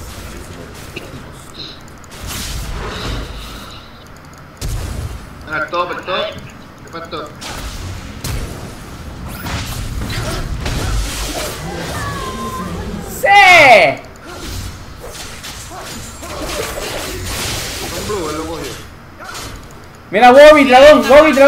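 Game spell effects crackle and whoosh during a fight.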